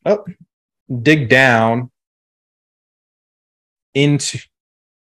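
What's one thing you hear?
A man talks casually over an online call, in short bursts.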